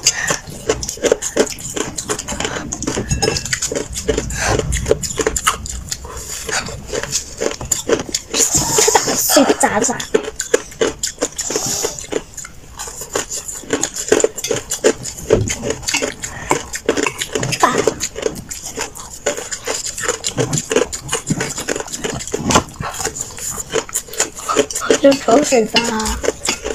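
Ice crunches as a hand scoops it in a metal bowl.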